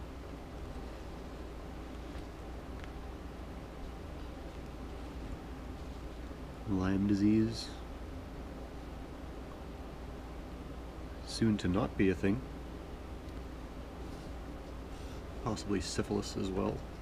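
Thread rustles softly as it is pulled through fabric.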